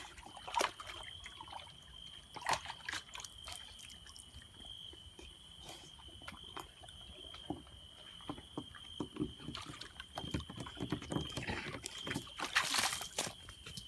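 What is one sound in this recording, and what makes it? A dog scrabbles and scratches inside a plastic tub.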